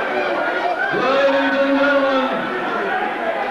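A man shouts loudly from a crowd.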